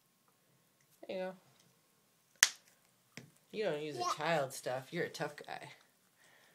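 A toddler babbles and vocalizes close by.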